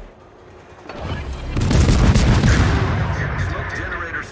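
Anti-aircraft guns rattle in rapid, loud bursts.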